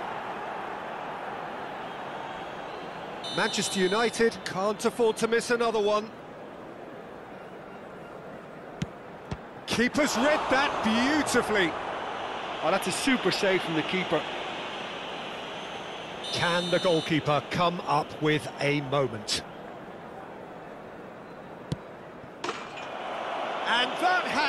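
A stadium crowd murmurs and roars loudly.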